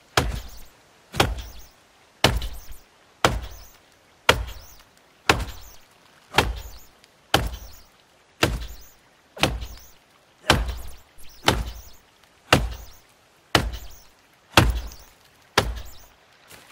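An axe chops rhythmically into a tree trunk.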